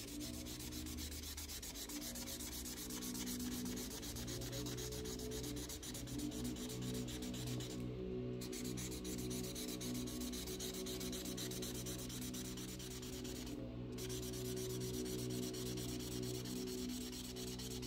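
A marker scratches softly on paper.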